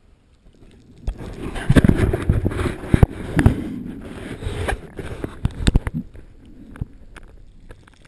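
Water rushes and bubbles loudly as a diver plunges under the surface.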